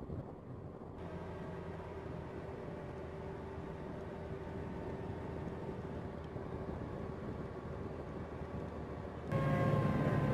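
A vehicle engine drones steadily close by.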